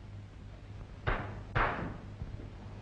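Knocks sound on a wooden door.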